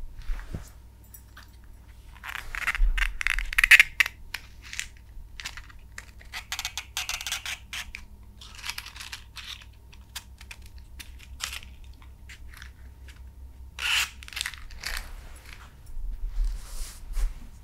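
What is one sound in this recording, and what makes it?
A matchbox rattles and slides open and shut close by.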